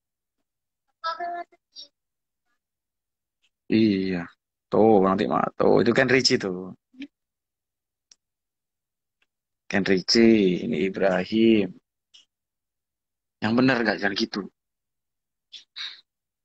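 A young man speaks calmly close to a phone microphone.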